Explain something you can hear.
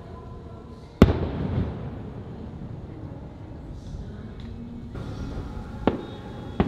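Fireworks crackle and fizzle after bursting.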